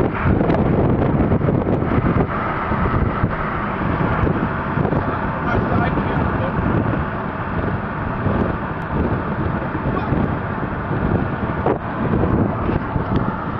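Wind buffets loudly through an open car window.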